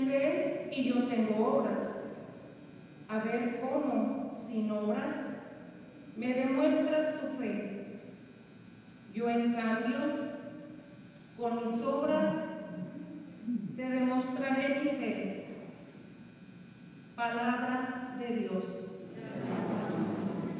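A woman sings slowly through a microphone in a large echoing hall.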